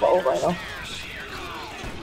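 Gunshots ring out.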